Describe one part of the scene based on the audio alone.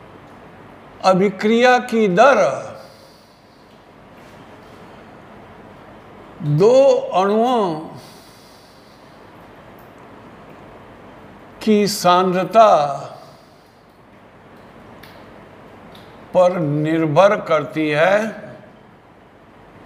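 An elderly man speaks calmly in short phrases, with pauses between them.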